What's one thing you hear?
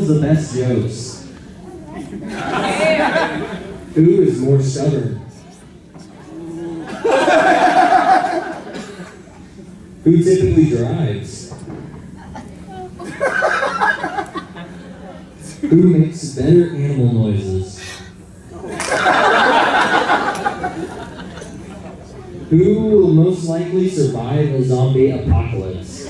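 A man speaks through a microphone and loudspeaker, pausing between questions.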